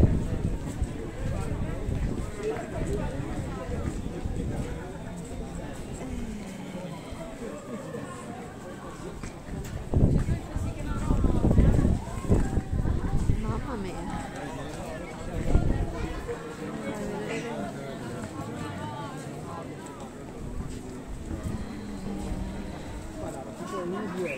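Footsteps shuffle on stone paving.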